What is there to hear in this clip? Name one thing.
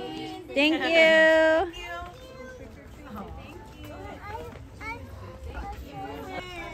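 Children and adults chatter nearby.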